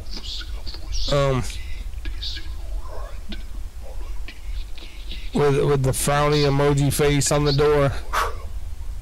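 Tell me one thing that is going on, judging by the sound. A man speaks close to a microphone, with animation.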